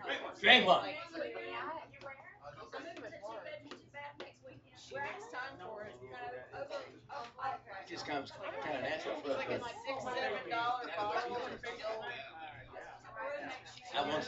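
A second man talks and laughs nearby.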